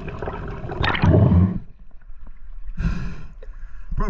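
Water splashes as a diver breaks the surface.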